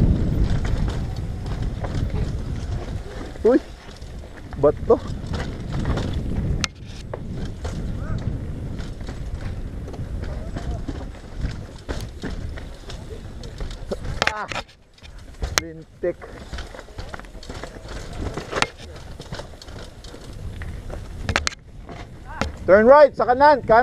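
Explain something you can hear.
A bicycle's frame and chain rattle and clatter over bumps.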